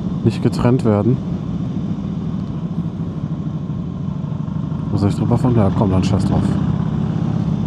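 A motorcycle engine revs up sharply through its gears.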